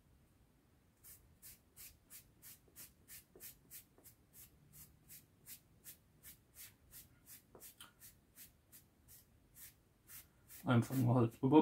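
A small block scrapes back and forth in quick, even strokes.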